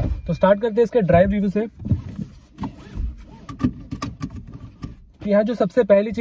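A seat belt clicks into its buckle.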